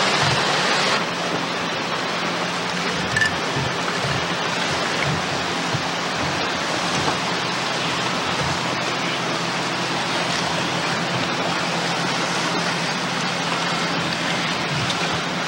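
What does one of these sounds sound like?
Water splashes and churns against a boat.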